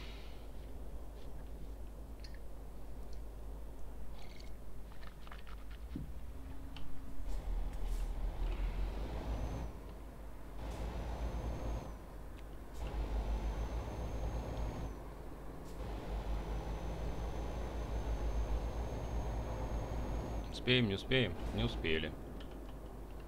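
A truck engine rumbles low and steadily, rising as it pulls away.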